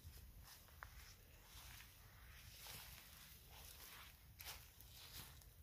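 Dry grass and reeds rustle close by.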